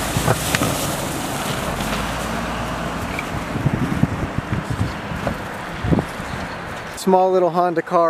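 Tyres crunch and slip over snow and grass.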